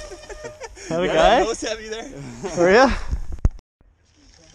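A young man whoops and laughs loudly nearby.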